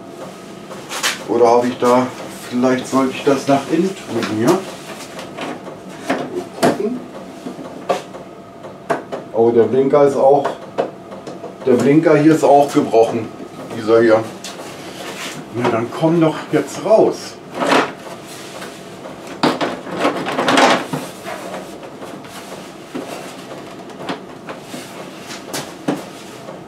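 Plastic parts click and knock as a man handles a scooter's front panel.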